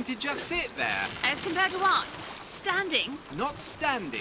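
Oars creak and dip into the water.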